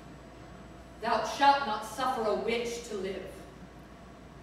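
A woman speaks with expression.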